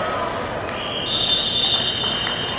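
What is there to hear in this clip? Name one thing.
A referee blows a long, shrill whistle.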